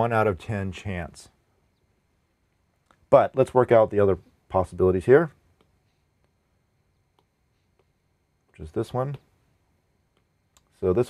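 A man speaks calmly and clearly into a close microphone, with pauses.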